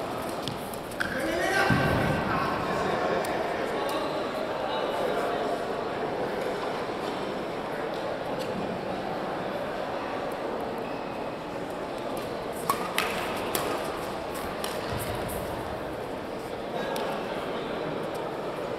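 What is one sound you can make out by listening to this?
Young men call out and shout in a large echoing hall.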